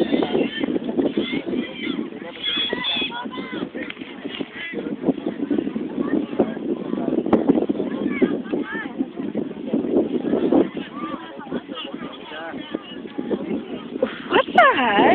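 A crowd of spectators and players shouts and calls out across an open field.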